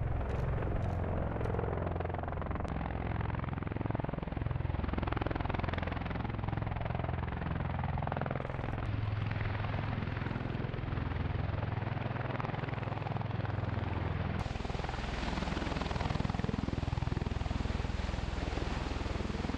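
Tiltrotor aircraft rotors thump and roar loudly overhead.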